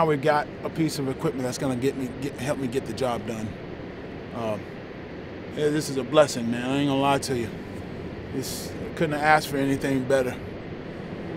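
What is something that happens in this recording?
A man speaks with animation, close to the microphone.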